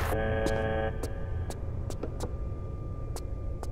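Footsteps clank on metal steps.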